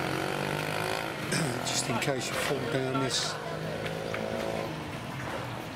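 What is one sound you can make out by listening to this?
A motorbike engine idles and revs nearby.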